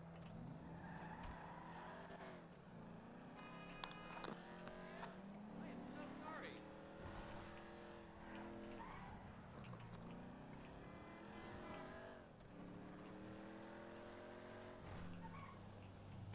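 A car engine revs up and down as it accelerates and shifts gears.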